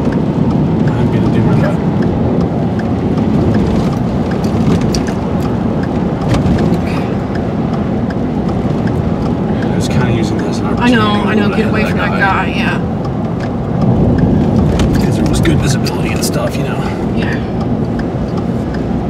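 Strong wind gusts against a moving car.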